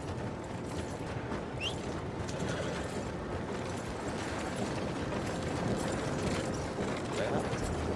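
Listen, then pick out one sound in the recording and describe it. Horse hooves clop on a dirt street.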